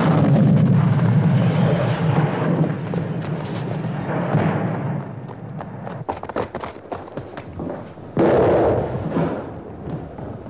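Smoke grenades hiss loudly as they pour out gas.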